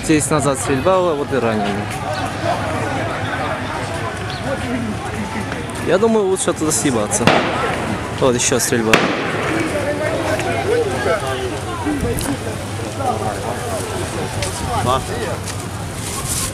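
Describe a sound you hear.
A crowd of men shout and talk excitedly outdoors.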